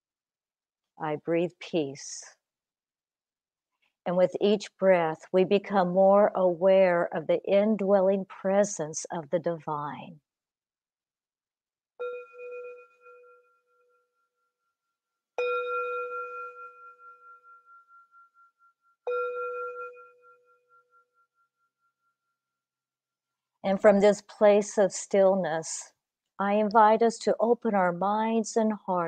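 An older woman speaks calmly and gently into a microphone.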